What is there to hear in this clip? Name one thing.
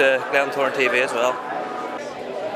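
A young man speaks into a microphone close by.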